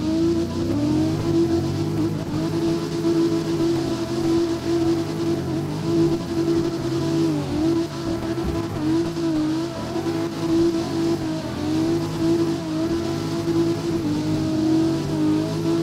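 A racing car engine revs hard and rises and falls in pitch as it drifts.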